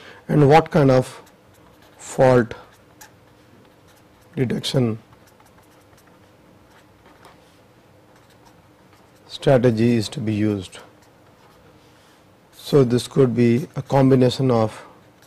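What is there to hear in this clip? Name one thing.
A felt marker squeaks and scratches across paper.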